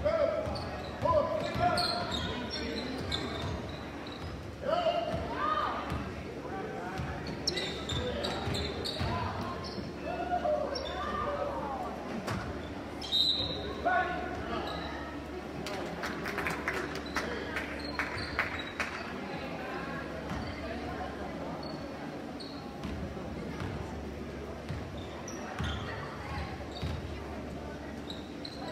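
Spectators call out and cheer in a large echoing gym.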